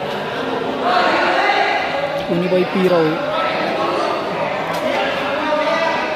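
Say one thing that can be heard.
A crowd of men chatters and calls out in a large echoing hall.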